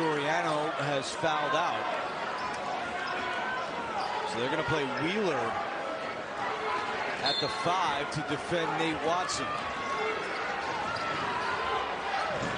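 A large indoor crowd murmurs and cheers in an echoing arena.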